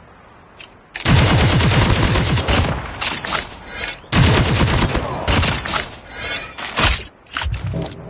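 A heavy machine gun fires in rapid, loud bursts.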